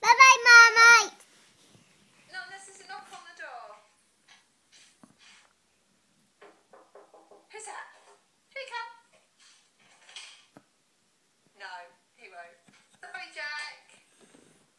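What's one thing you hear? A young child talks and calls out in a high voice close by.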